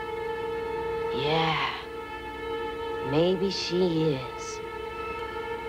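A boy speaks quietly.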